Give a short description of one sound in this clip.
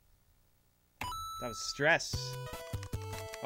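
Chiptune video game music plays.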